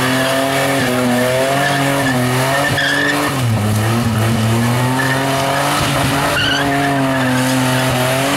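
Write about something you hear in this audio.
A car engine roars loudly at high revs, rising and falling.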